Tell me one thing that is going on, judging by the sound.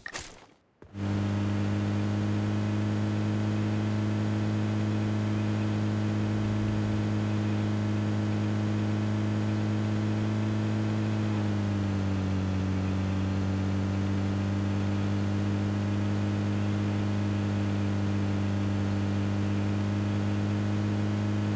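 A vehicle engine hums steadily, dropping slightly in pitch partway through.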